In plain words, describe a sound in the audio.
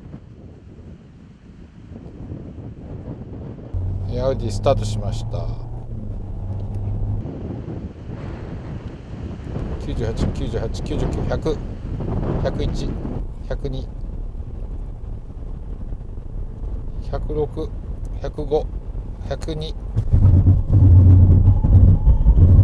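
A car engine hums and rumbles as the car drives.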